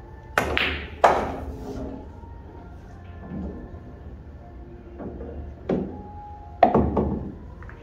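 Billiard balls knock against each other and against the table's cushions.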